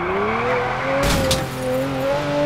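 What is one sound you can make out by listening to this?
A sports car crashes against a roadside barrier.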